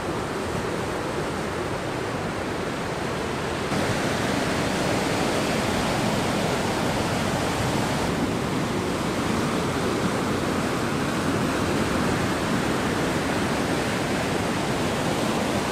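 Ocean waves crash and roar steadily onto the shore.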